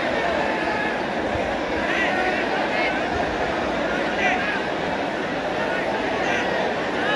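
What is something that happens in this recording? A stadium crowd murmurs and chatters steadily in a large open space.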